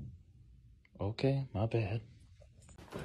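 A young man speaks briefly, close by.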